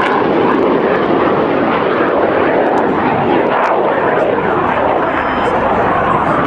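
A jet engine roars loudly overhead.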